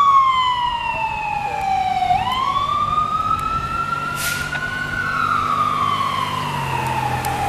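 An ambulance siren wails loudly, sweeping up and down.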